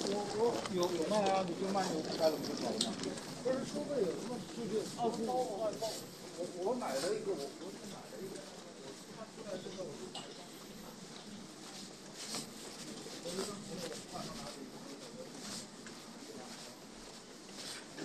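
A moving walkway hums steadily.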